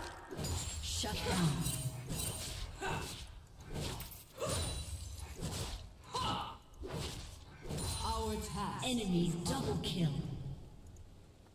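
Spells and weapon hits clash rapidly in a game fight.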